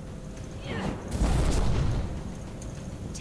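A burst of flames whooshes and roars.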